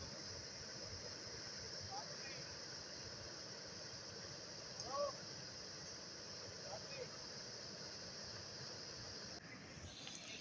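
Floodwater rushes loudly over a low crossing.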